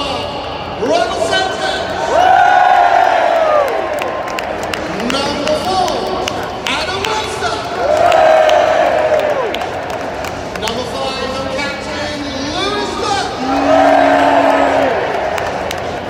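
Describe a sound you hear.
A crowd roars loudly in bursts.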